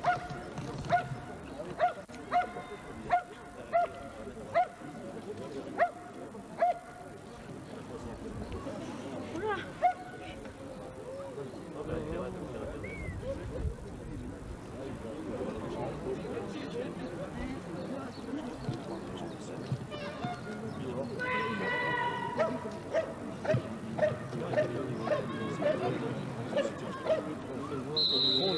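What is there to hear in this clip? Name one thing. A dog barks sharply and repeatedly.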